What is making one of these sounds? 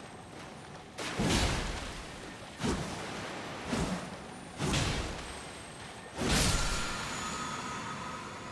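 Heavy blows and magic blasts crash and boom with echoing bursts.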